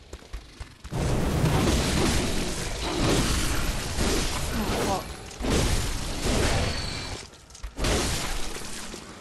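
Weapons clash and slash loudly.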